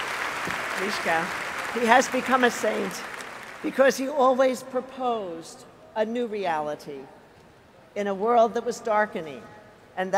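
An elderly woman speaks calmly into a microphone in a large echoing hall.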